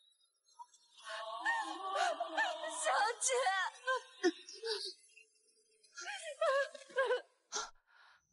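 A young woman cries out in distress.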